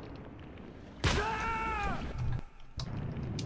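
Something plunges into lava with a loud sizzling burst.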